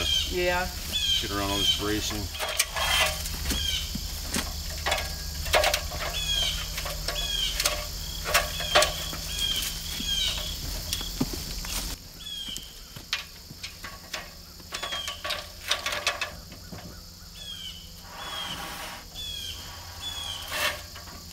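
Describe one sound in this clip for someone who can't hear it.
Aluminium ladders clank and rattle as they are lifted and moved.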